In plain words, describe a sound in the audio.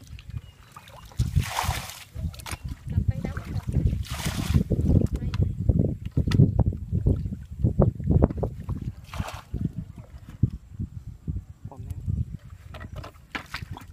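Water splashes and sloshes in shallow mud.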